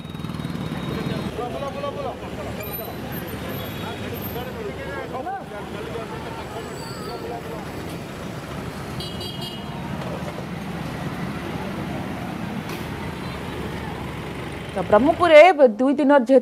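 Street traffic rumbles outdoors.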